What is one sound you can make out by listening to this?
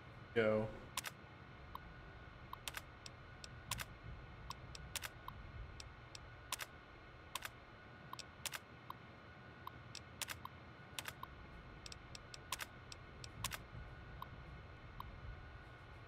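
A computer terminal ticks and clicks rapidly as text prints out.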